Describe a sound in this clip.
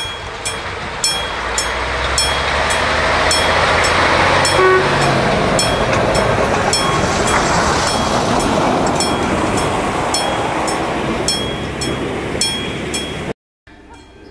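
A train rumbles and clatters past close by, then fades away.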